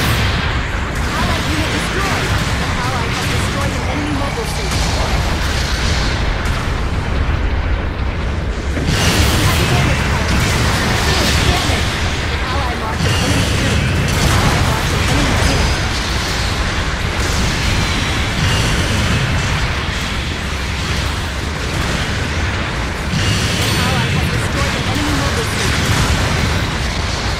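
Heavy gunfire rattles.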